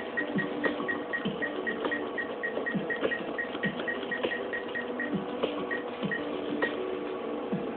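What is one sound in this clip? An arcade machine gives short, regular electronic beeps as menu pages change.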